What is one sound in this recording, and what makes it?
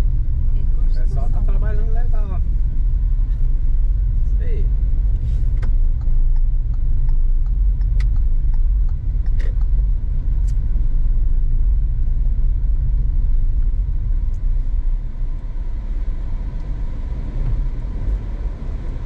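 A car engine hums low and steady as the car drives slowly.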